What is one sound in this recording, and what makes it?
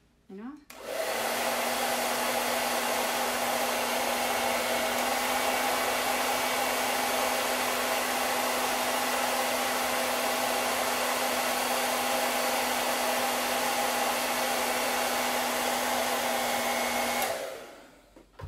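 A hair dryer blows with a steady loud whir, then switches off.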